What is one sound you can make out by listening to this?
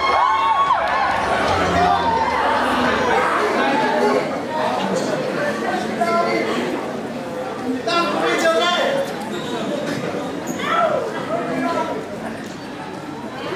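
A young man speaks through a microphone in a large echoing hall.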